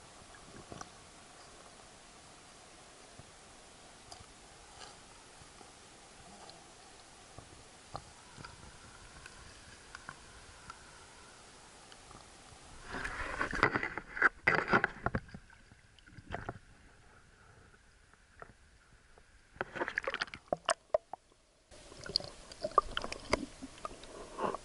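Water gurgles and burbles, muffled and underwater.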